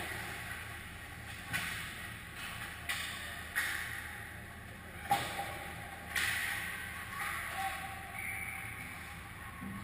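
Skates scrape and swish across the ice in a large echoing rink.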